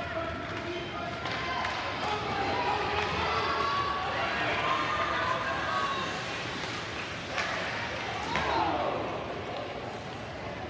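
Spectators shout and cheer in an echoing arena.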